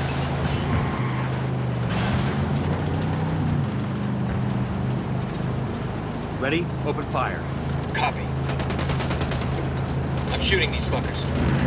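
A vehicle engine rumbles steadily as it drives along a road.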